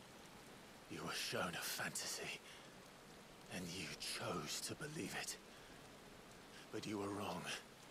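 A man speaks slowly and menacingly, close by.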